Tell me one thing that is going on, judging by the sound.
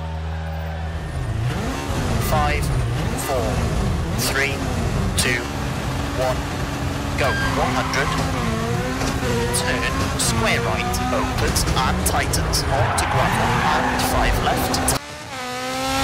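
A rally car engine revs hard and accelerates, rising and dropping in pitch through gear changes.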